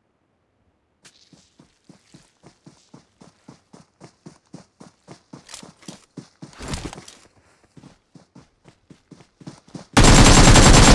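Quick footsteps thud through grass.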